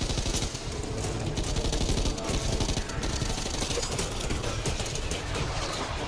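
A machine gun fires rapid bursts of gunshots.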